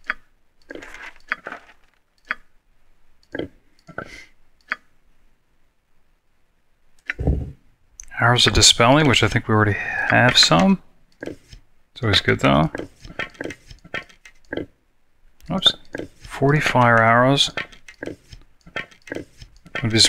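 Short soft clicks sound as items are picked up and set down.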